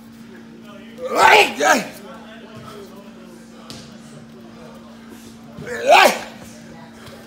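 A man exhales sharply and grunts with effort, close by.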